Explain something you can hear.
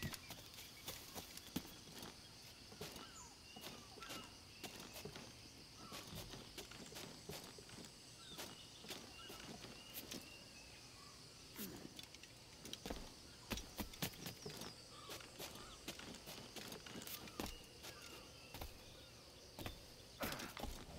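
Hands and feet knock on wooden beams while climbing.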